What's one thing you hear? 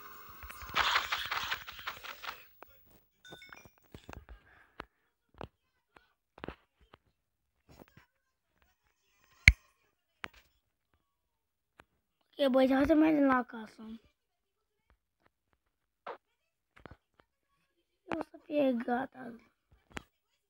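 A boy talks into a close microphone with animation, in short bursts.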